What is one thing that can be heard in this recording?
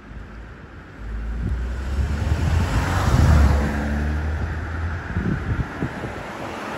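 An ambulance engine rumbles as it pulls out slowly.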